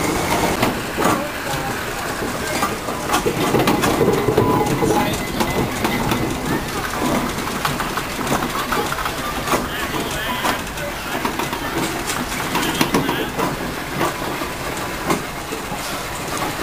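A steam traction engine rolls by, its iron wheels grinding on the tarmac.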